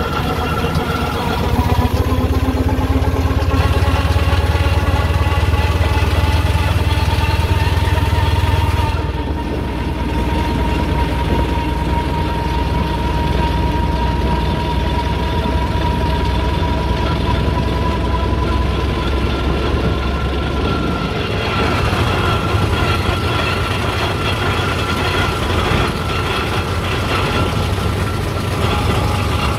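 A vehicle's engine runs with a steady low drone and a whining tone.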